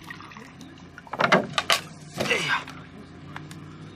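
Plastic crinkles as a water bottle is handled.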